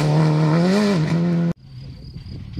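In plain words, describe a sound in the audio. A rally car engine revs loudly in the distance.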